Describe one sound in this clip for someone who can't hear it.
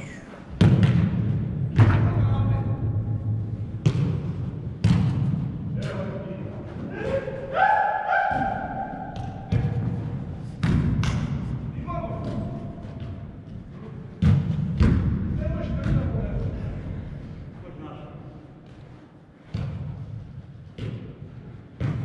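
A football thuds against boots and walls in a large echoing hall.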